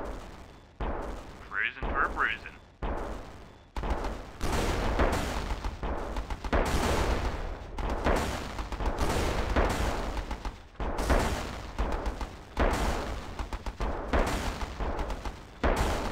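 Tank cannons fire in heavy, repeated booms.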